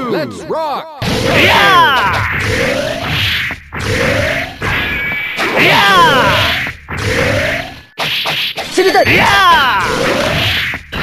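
Game fighters clash with sharp hits and whooshing attacks.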